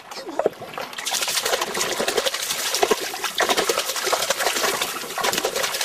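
Water rushes and bubbles loudly, heard from underwater.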